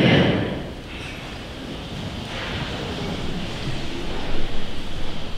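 A man speaks quietly through a microphone in a large echoing hall.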